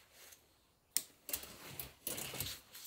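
Fabric rustles as laundry is pushed into a wire basket.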